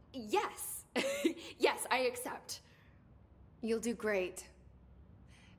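A young woman speaks cheerfully and warmly, close by.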